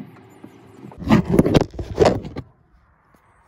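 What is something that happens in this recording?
Something rubs and knocks loudly right against the microphone.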